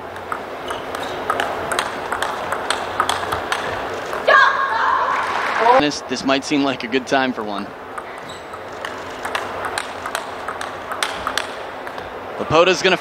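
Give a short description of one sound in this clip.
A ping-pong ball clicks quickly back and forth off paddles and a table.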